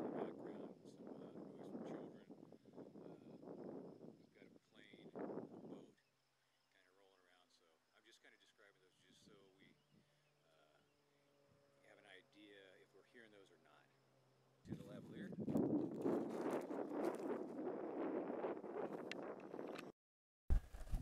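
A man talks calmly and close to a clip-on microphone.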